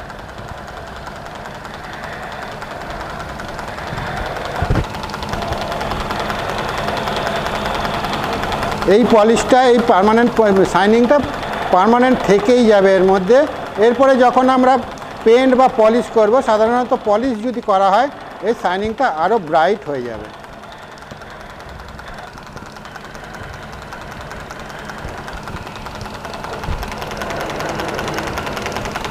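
A lathe spins with a steady hum.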